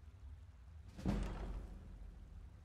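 A heavy wooden chest lid thuds open.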